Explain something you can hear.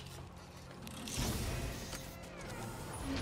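A heavy chest lid creaks open.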